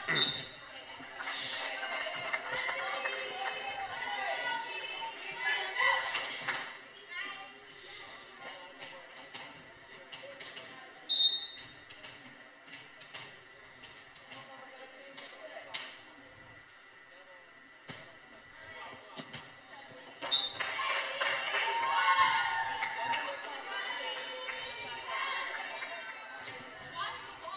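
Young girls shout and cheer in a large echoing hall.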